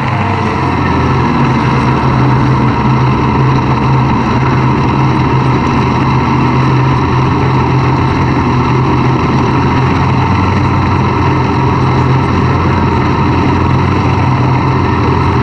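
Racing car engines roar loudly and steadily close by.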